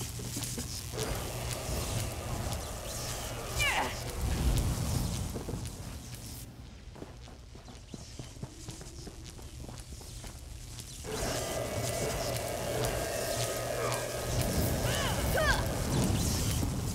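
Electricity crackles and zaps.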